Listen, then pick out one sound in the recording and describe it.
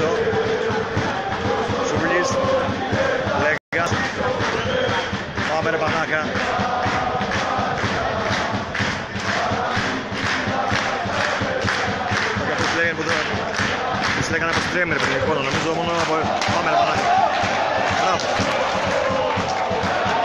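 A crowd in the stands chants and shouts, heard outdoors from a distance.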